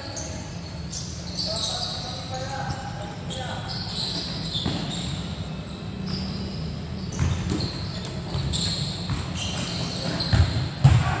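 Young players shout and call out to each other across an echoing covered court.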